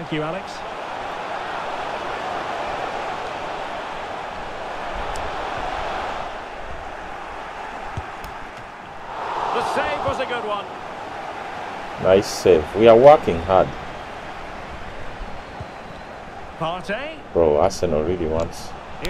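A stadium crowd roars steadily.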